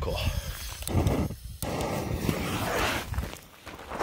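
A firework fountain hisses as it sprays sparks.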